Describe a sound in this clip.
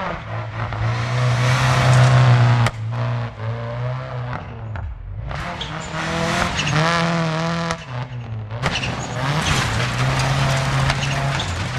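A rally car engine roars at high revs, rising and falling in pitch as the gears shift.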